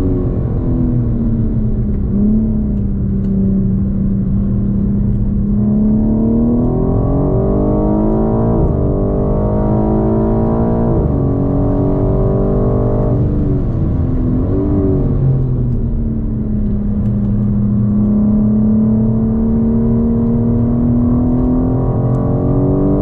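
Tyres rumble on the track.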